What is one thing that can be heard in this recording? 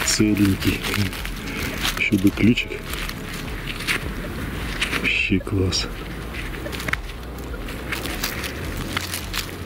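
Gloved fingers rub and scrape dirt off a small metal object.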